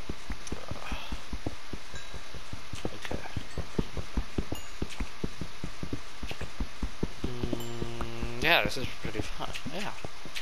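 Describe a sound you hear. A pickaxe chips rapidly at stone, with quick crumbling knocks.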